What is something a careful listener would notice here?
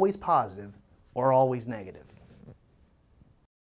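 A man speaks clearly and calmly into a close microphone.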